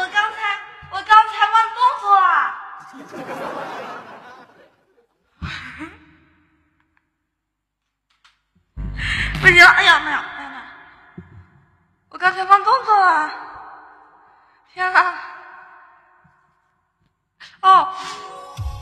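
A young woman sings short phrases through a microphone with a lot of echo.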